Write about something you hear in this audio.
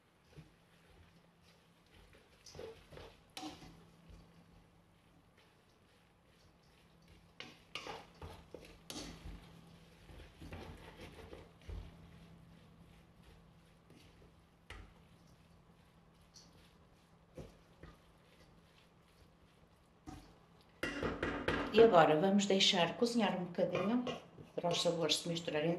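A wooden spoon scrapes and knocks inside a metal pot.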